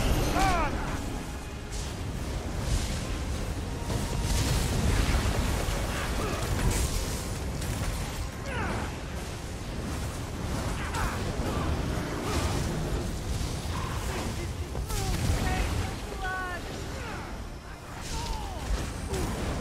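Lightning crackles and zaps.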